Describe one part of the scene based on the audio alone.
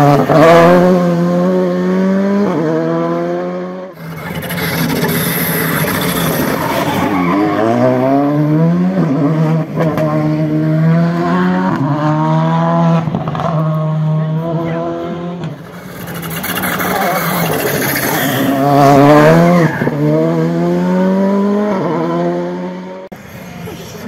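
A rally car engine roars and revs hard, rising and dropping through gear changes.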